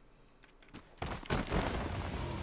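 A game character lands in rustling grass.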